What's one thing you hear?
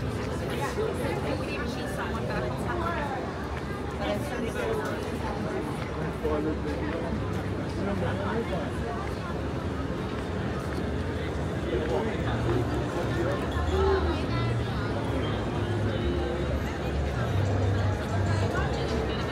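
Many people chatter around outdoors.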